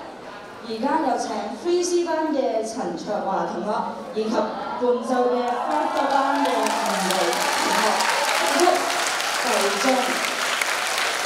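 A man speaks with animation through a microphone, over loudspeakers in a large hall.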